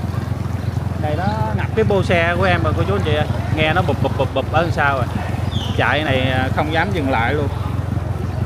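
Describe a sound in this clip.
Men talk nearby in a lively way.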